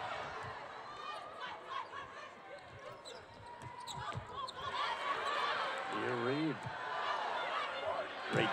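A large crowd cheers and chatters in an echoing arena.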